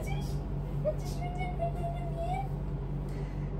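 A young woman coos softly to a baby close by.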